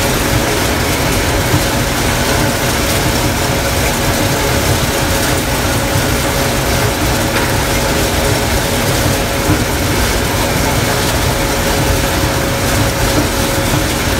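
Corn stalks rustle and crunch as a harvester cuts through them.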